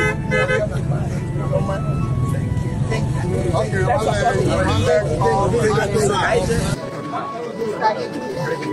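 A crowd of men and women talk and chatter outdoors.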